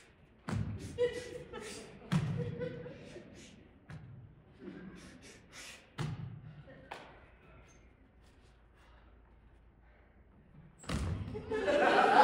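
Feet thud on a wooden stage floor.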